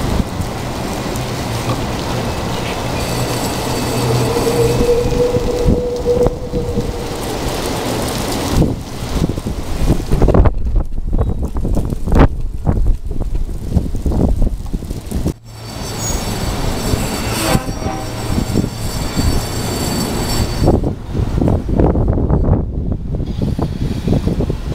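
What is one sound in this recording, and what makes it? A freight train rumbles and clatters past on the tracks.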